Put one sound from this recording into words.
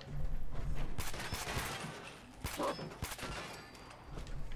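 Gunshots ring out in a short burst.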